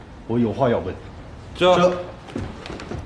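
A man speaks firmly.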